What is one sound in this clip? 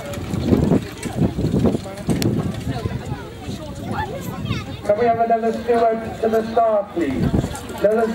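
Horse hooves thud on grass at a trot.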